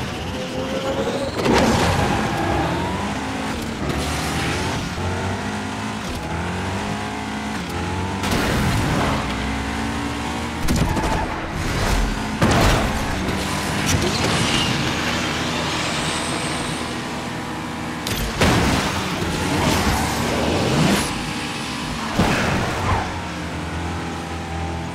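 A racing car engine roars and revs at high speed.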